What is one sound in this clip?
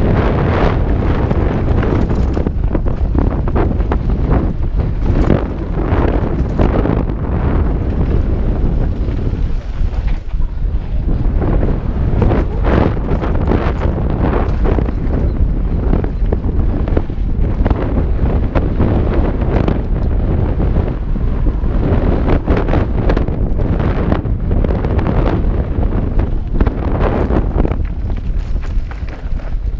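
Wind roars loudly past a helmet microphone.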